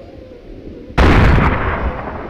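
A gunshot rings out with a loud crack.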